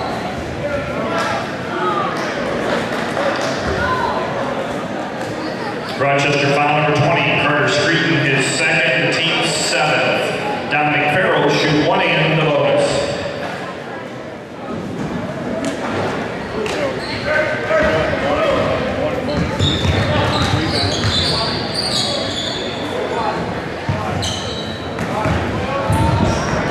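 A crowd murmurs and cheers in a large echoing gym.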